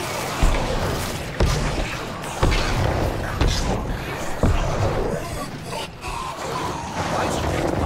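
Magical blasts boom and crackle in a battle.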